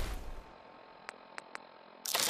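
Soft menu clicks tick.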